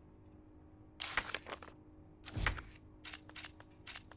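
Short whooshing menu sounds play as pages switch.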